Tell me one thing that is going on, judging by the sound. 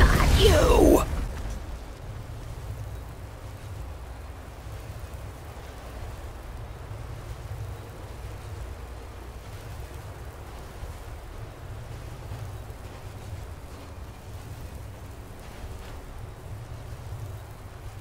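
A low, steady electric hum with faint crackles goes on.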